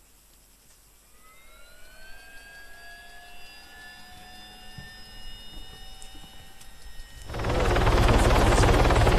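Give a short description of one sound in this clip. A helicopter turbine whines, rising in pitch as it spins up.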